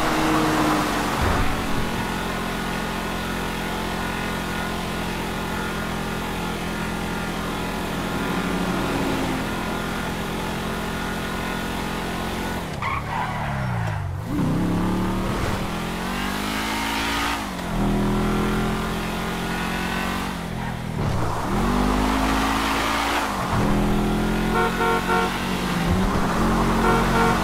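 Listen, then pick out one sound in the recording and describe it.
A car engine roars and revs up and down as it shifts gears.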